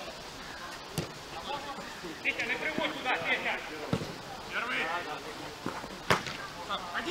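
A football is kicked with sharp thumps.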